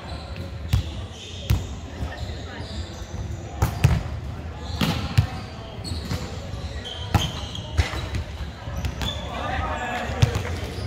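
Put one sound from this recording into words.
A volleyball is struck with sharp slaps that echo in a large hall.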